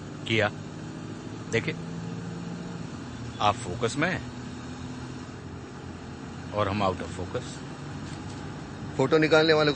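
A man speaks in short, tense bursts close by.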